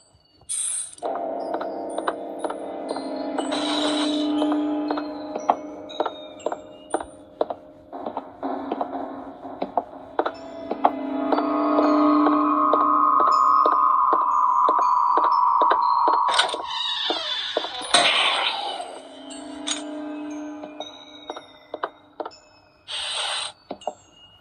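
Eerie music plays from a tablet game.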